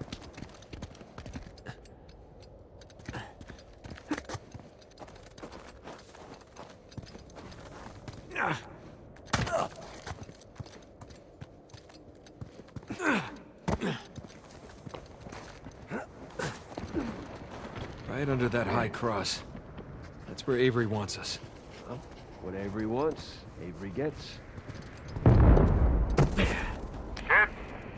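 Footsteps crunch on rock and snow.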